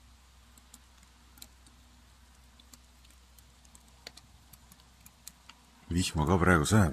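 Burning wood crackles and pops softly in a stove.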